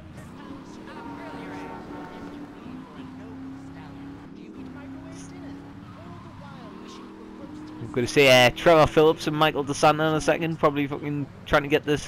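A sports car's engine hums steadily as the car drives along.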